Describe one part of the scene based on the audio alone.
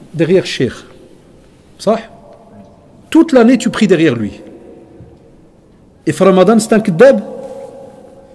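A man speaks calmly and closely into a microphone, in short phrases with pauses.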